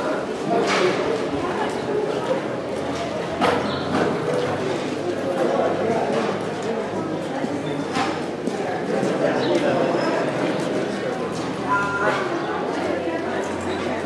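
Footsteps shuffle slowly across a hard floor outdoors.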